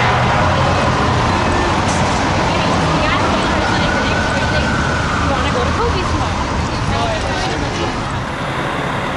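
A siren wails.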